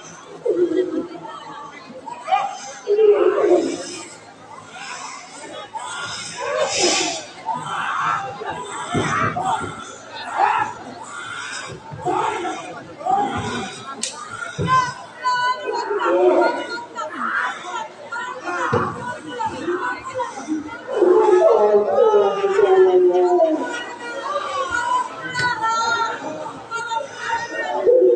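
Actors shout and cry out with emotion over a loudspeaker, in a large open space.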